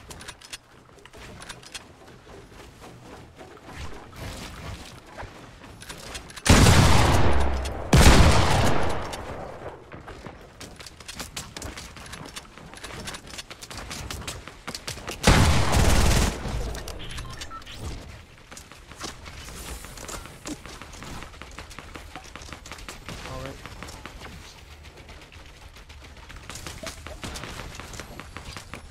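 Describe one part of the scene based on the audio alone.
Keys on a keyboard click rapidly.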